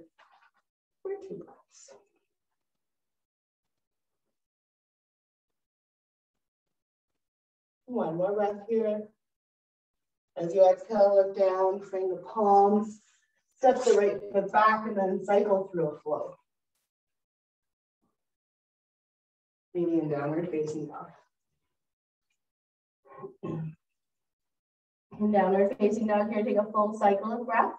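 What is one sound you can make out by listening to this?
A woman speaks calmly and close by, with long pauses between phrases.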